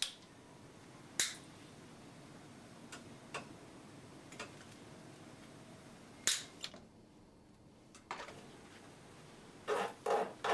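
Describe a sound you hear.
Wire mesh clicks and ticks as fingers bend it.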